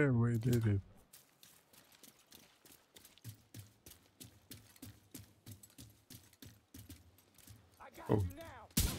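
Footsteps thud quickly on hard ground.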